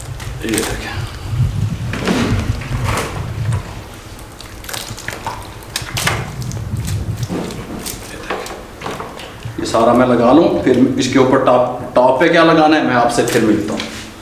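Hands squelch and pat wet, saucy pieces of meat.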